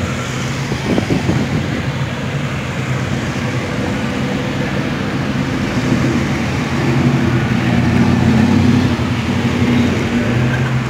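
A classic car's engine rumbles loudly as it pulls away.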